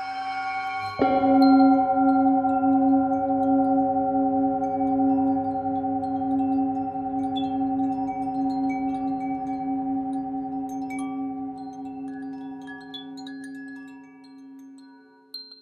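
A singing bowl is struck and rings out brightly.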